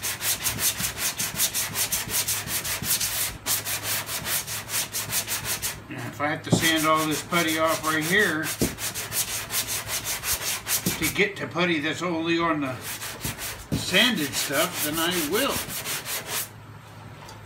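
A sanding block scrapes rapidly back and forth on a metal panel.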